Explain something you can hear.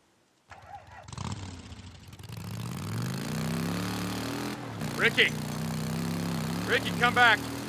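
A motorcycle engine runs and revs steadily.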